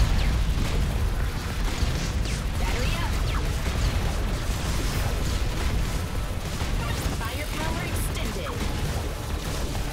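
Explosions burst repeatedly.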